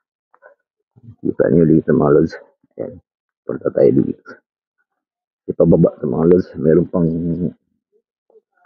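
A man talks close to the microphone in a calm, chatty way.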